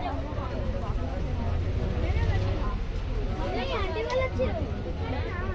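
Many people talk and chant around the listener in a busy crowd.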